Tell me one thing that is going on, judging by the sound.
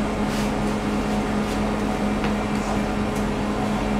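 A metal baking tray rattles as it is lifted.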